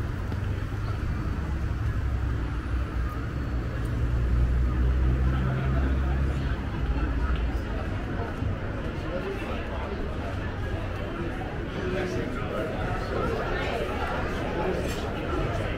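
Footsteps tap on pavement close by.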